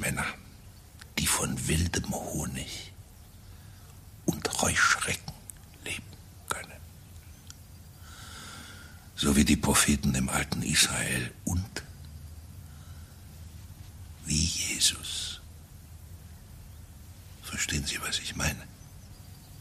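An elderly man speaks in an agitated, pleading voice, close by.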